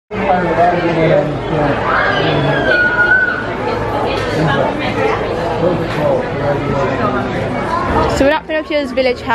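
A crowd of men and women chatters loudly all around.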